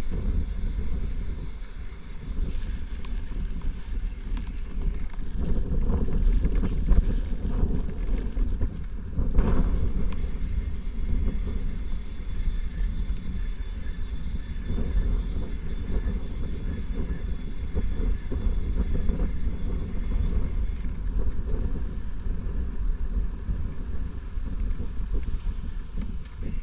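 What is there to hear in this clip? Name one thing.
Bicycle tyres roll over the road and brick paving.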